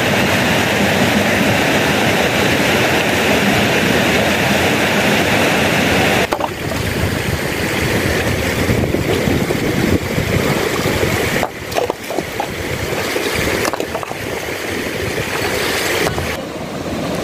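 A stream rushes over rocks.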